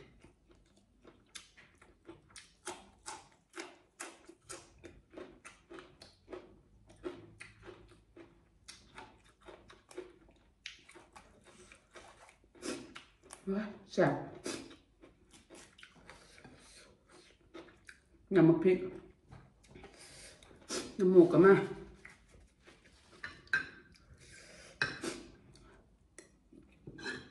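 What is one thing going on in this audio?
A woman chews crunchy fresh greens close to a microphone.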